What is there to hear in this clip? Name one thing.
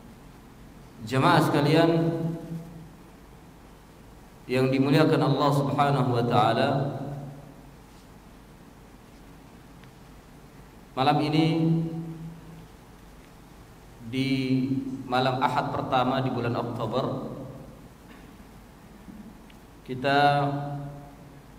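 A man speaks calmly into a microphone in short bursts, with long pauses between phrases.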